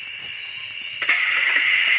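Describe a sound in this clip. A bus door opens with a hiss.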